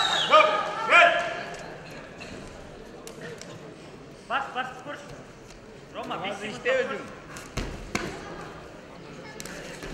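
A referee shouts calls to the wrestlers.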